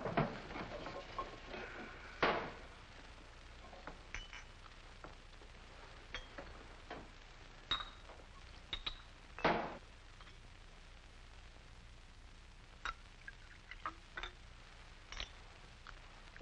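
Glasses and a bottle clink on a table.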